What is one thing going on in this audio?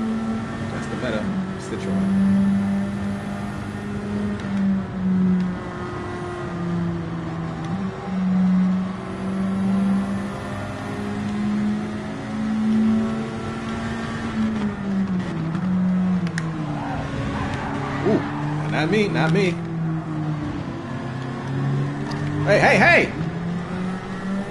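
A racing car engine roars steadily, rising and dropping in pitch as it shifts gears.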